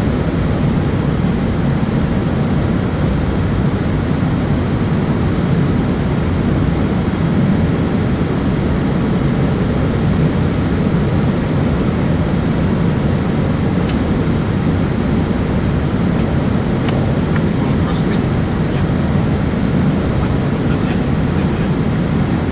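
A turboprop airliner's engines drone steadily, heard from inside the cockpit.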